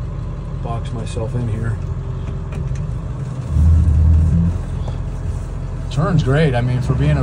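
A vehicle engine idles with a steady low rumble.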